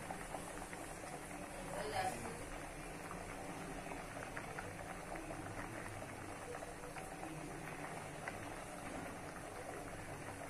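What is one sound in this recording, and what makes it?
A thick sauce bubbles and pops steadily in a pan.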